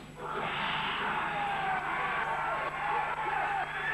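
An electric guitar plays loudly through an amplifier.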